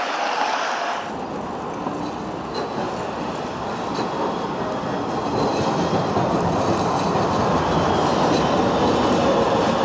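A tram rolls by along a street.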